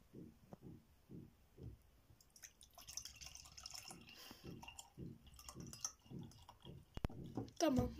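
Juice pours from a carton into a glass.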